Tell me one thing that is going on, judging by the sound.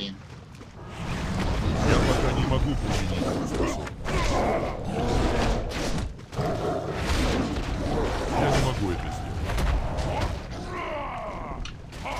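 Weapon blows and magic blasts crash again and again in a fight with a large beast.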